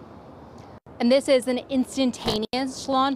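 A young woman speaks clearly into a microphone.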